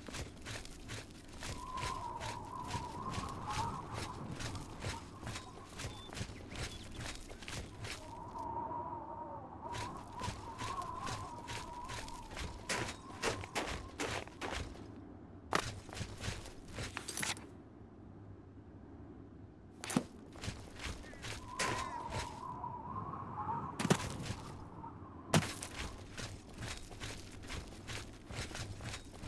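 Wind howls steadily in gusts.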